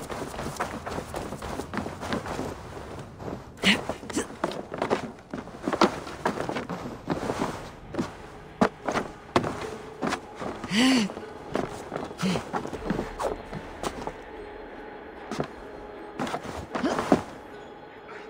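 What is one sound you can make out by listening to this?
Footsteps and climbing thuds sound on wood and stone in quick succession.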